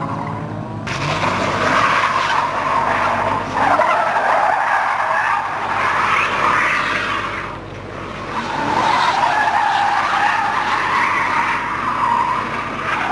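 A car engine revs hard and rises and falls in pitch.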